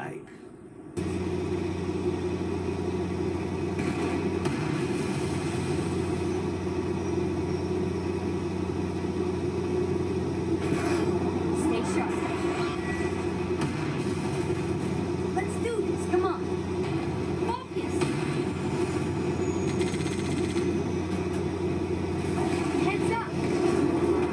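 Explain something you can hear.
A vehicle engine drones steadily through a television speaker.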